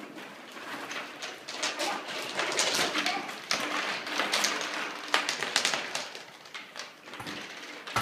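Plastic bottle caps rattle and clatter in plastic bags.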